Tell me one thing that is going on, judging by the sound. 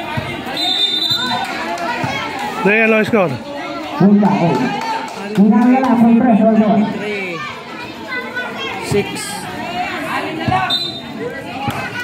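A crowd of people chatters and calls out nearby, outdoors.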